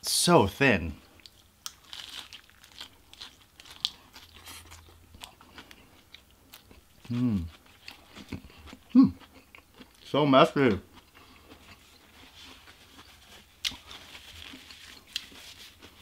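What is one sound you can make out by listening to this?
A young man chews food noisily, close to a microphone.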